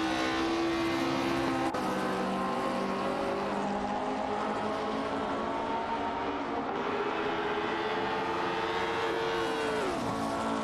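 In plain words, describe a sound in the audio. A racing car engine roars at high revs and drops in pitch as it shifts and slows.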